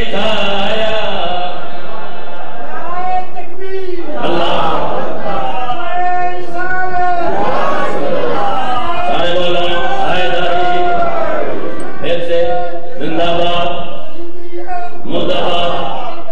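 A man chants a lament loudly through a microphone.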